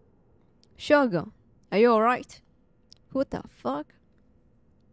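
A young woman exclaims with alarm into a microphone, in short bursts.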